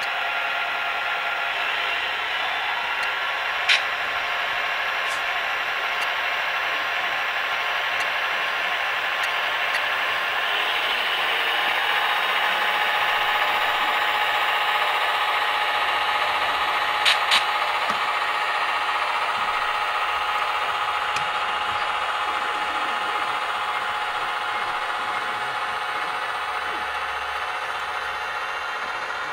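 A model train motor hums steadily as the locomotive rolls along the track.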